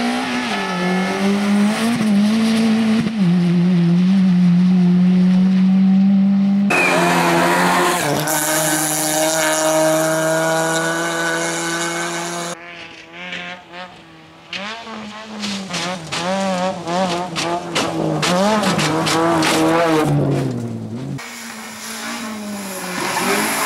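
A rally car engine roars loudly at high revs, shifting gears as it speeds past.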